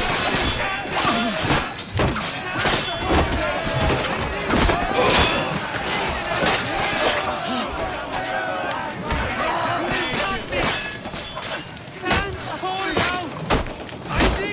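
Swords clash and clang in a close fight.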